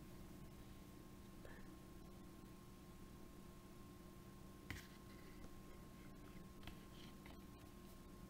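A plastic phone case clicks and taps softly as it is handled.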